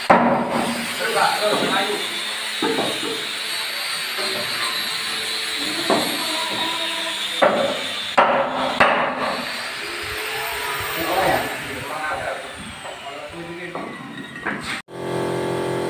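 A heavy wooden door knocks and scrapes against its frame.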